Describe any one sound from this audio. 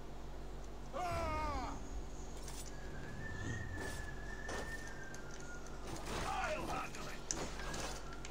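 Swords clash in a fight.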